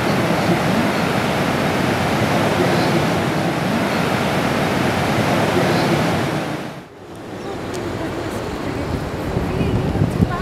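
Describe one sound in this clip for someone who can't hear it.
Ocean waves crash and roll with a steady rushing roar.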